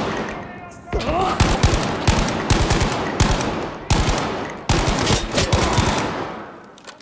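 A heavy gun fires in loud, booming shots.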